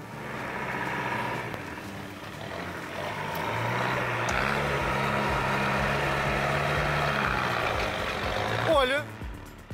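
An engine rumbles and revs.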